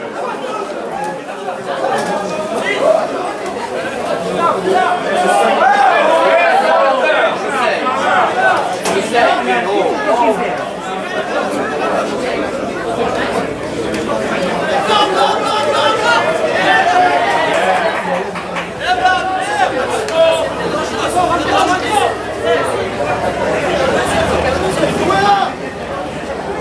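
Spectators chatter and cheer nearby.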